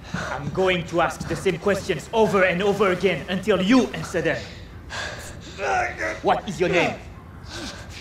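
A man speaks sternly and menacingly, close by.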